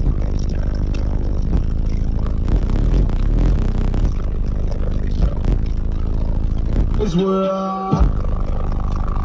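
Heavy bass music blasts from a high-powered car audio system inside a vehicle.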